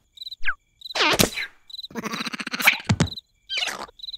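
A cartoon creature giggles and babbles in a squeaky voice.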